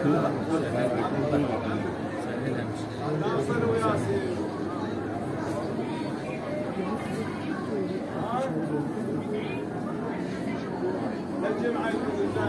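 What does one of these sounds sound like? A crowd of men murmur and talk nearby in an echoing hall.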